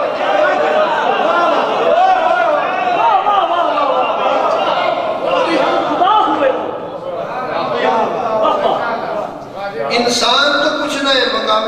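A man recites with passion into a microphone, heard through a loudspeaker in an echoing hall.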